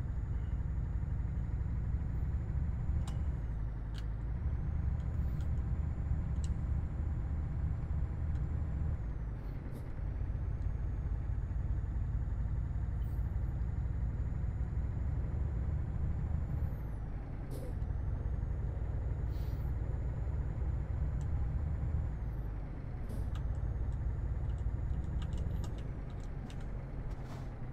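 A heavy truck engine drones steadily, rising and falling as it shifts gears.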